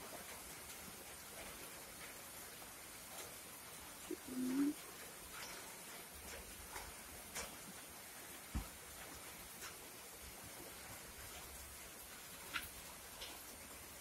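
Light taps and rustles come from objects being handled on a table.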